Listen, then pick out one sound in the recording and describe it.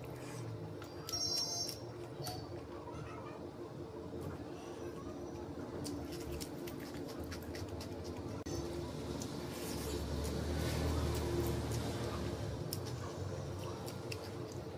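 A person chews food with wet, close sounds.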